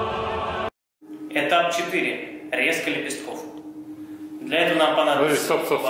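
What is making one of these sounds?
A man speaks calmly to the listener, close by.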